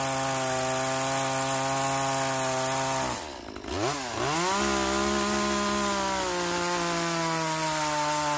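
A chainsaw roars steadily as it cuts into wood.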